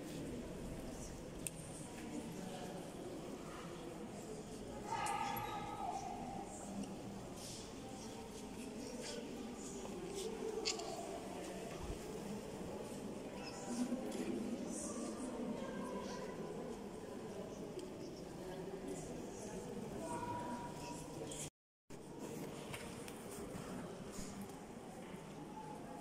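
A crowd of people murmurs and talks in a large echoing hall.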